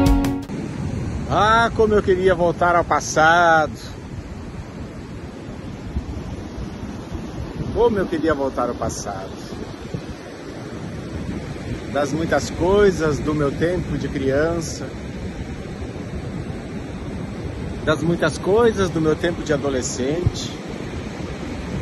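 A man talks close up, with animation.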